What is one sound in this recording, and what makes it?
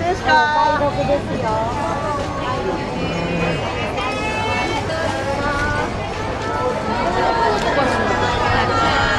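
A crowd of adult men and women chatter loudly close by outdoors.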